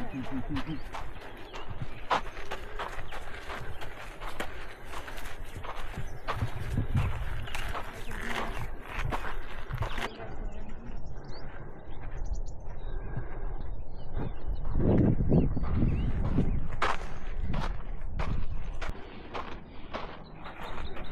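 Footsteps crunch on a dry gravel trail.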